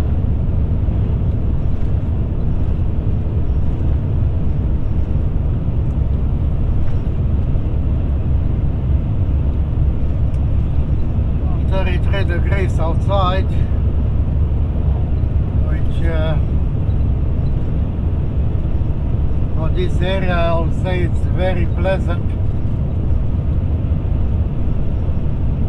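A vehicle's engine hums and its tyres roar steadily on a paved road.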